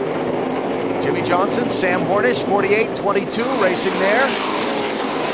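Engines whine and rise in pitch as cars shift gears and accelerate.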